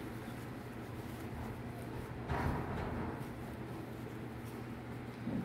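Fabric rustles softly as hands fold and pinch it.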